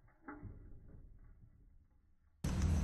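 A hamster wheel rattles as it spins.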